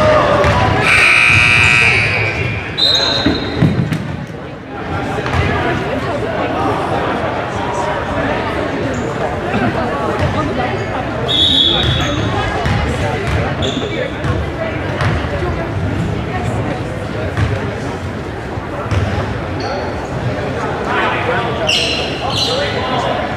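Sneakers squeak sharply on the wooden floor.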